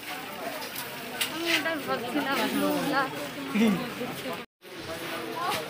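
A crowd of women and men chatter close by.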